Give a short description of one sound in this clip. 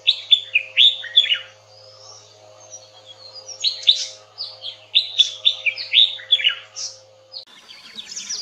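A red-whiskered bulbul sings bright, chirping phrases.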